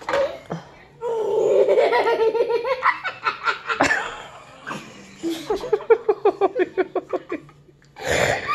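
A young boy laughs loudly in bursts.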